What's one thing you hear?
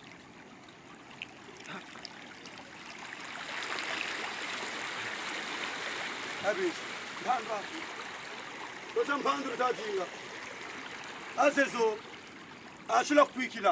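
Water splashes around someone wading.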